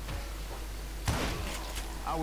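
A revolver fires a loud shot.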